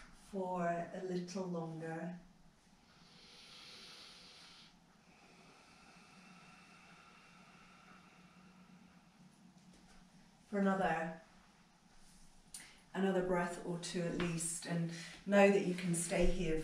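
A woman speaks calmly and softly.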